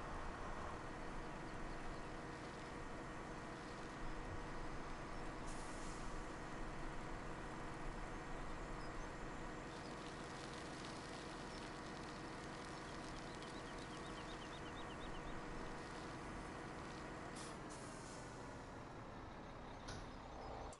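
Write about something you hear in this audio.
A tractor engine drones steadily while driving.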